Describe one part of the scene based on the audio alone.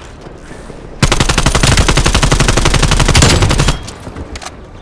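A rifle fires rapid bursts up close.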